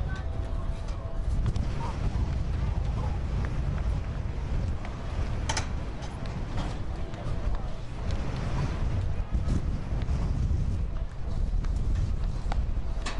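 Wind buffets outdoors throughout.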